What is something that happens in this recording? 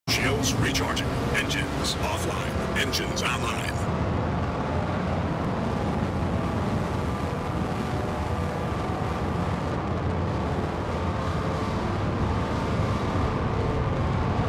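A thruster roars as it fires.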